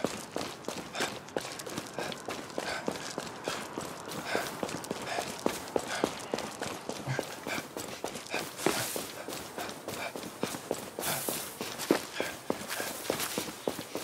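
Footsteps crunch steadily over dry leaves and grass.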